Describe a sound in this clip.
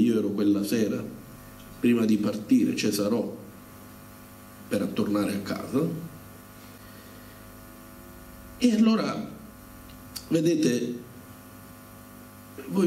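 A middle-aged man speaks into a microphone over a loudspeaker in a hall, in bursts with pauses.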